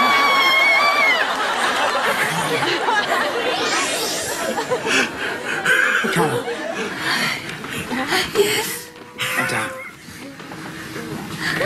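A young woman talks excitedly.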